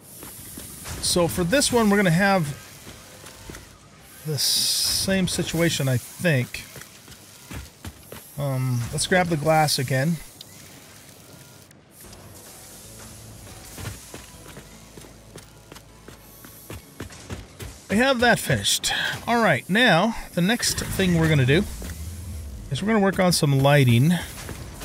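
An older man talks calmly into a close microphone, in bursts with pauses.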